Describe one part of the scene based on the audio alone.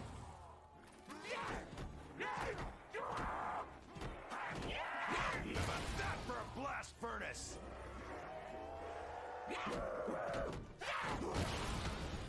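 Monsters snarl and growl close by.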